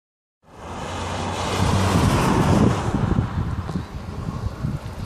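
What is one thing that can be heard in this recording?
A rally car roars past close by at high speed.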